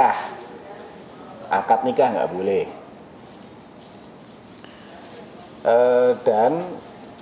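A man speaks calmly into a headset microphone, in short phrases with pauses.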